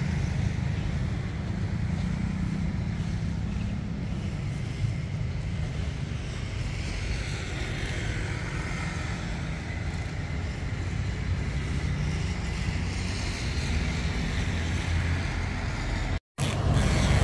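A diesel train rumbles as it rolls slowly away over the rails.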